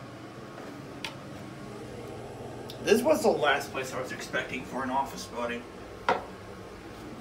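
A toilet lid clatters as a hand lifts it.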